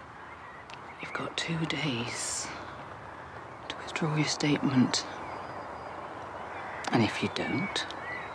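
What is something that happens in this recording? An older woman speaks softly and earnestly, close by.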